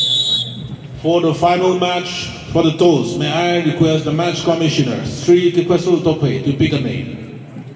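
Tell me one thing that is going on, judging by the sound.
A man speaks loudly and with animation.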